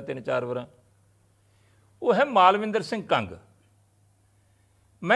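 An elderly man speaks calmly into microphones nearby.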